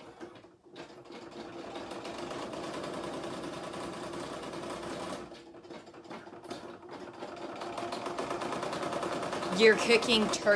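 An embroidery machine whirs and stitches with a steady, rapid buzz.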